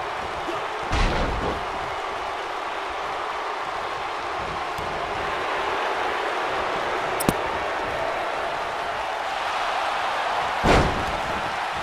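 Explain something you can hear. A body slams down heavily onto a wrestling ring.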